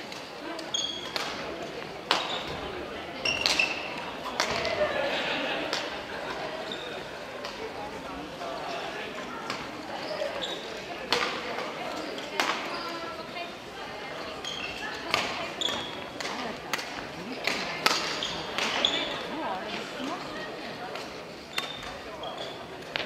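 Many people chatter in a large echoing hall.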